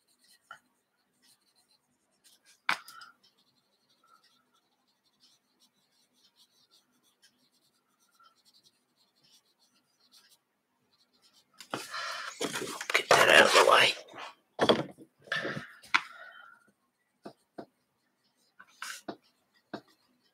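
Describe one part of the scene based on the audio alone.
A coloured pencil scratches softly across paper.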